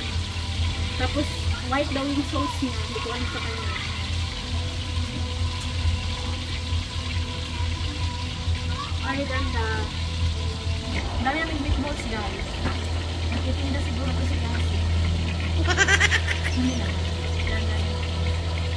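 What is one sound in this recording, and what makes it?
A young woman talks casually, close by.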